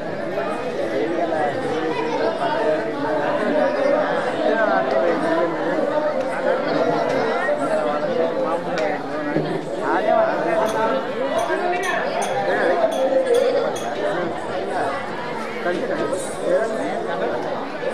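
A man's voice sings loudly through a loudspeaker.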